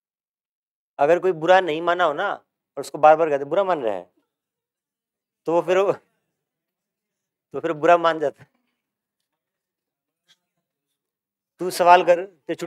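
A young man speaks calmly in short bursts, close to a microphone.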